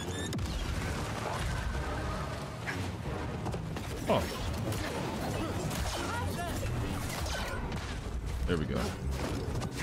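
A laser sword hums and clashes in a fight.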